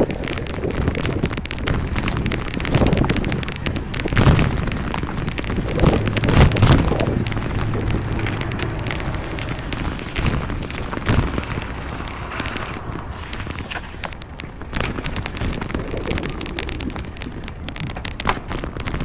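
A car drives along a street with a steady low rumble.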